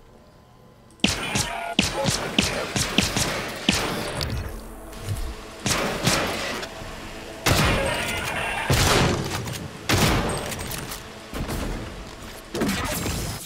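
A weapon fires in loud, rapid bursts with crackling blasts.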